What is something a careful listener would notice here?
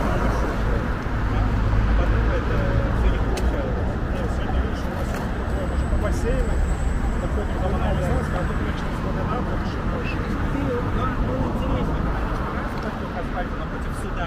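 Several young men talk casually nearby.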